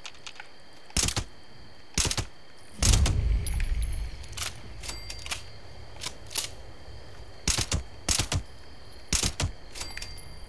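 A rifle fires single shots.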